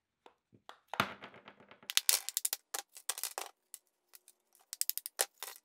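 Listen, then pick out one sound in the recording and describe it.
Plaster shell cracks and breaks apart.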